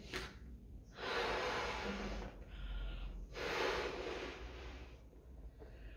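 A young woman blows hard into a balloon.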